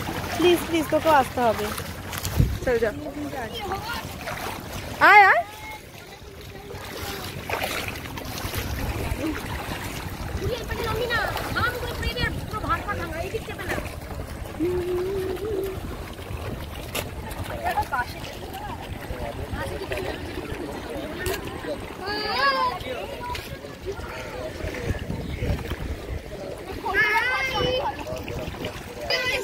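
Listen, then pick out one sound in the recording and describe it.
Water splashes as people wade in a river.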